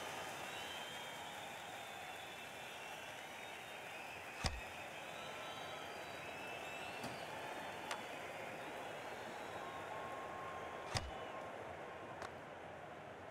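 A large crowd murmurs and cheers steadily in an arena.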